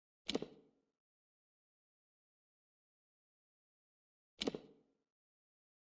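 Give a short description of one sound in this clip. A game menu gives two short clicks.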